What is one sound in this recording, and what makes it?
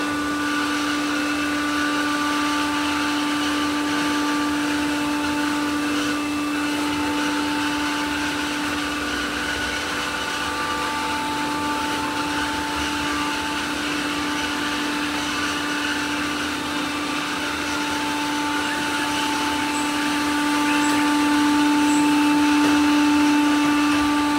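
Robot vacuum cleaners hum and whir steadily as they roll across the floor.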